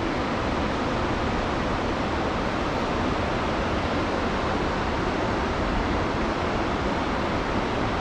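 Waves break and wash onto a beach in the distance.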